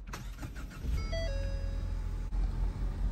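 A car gives a few short electronic chimes.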